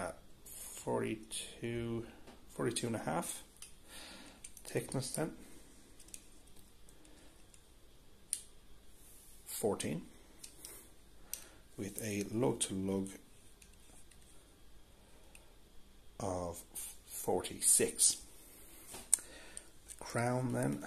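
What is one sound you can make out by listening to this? Steel caliper jaws click against a watch case.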